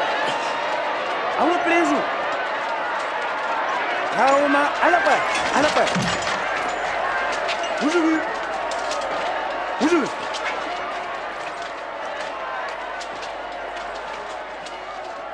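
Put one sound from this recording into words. A crowd murmurs and clamours all around.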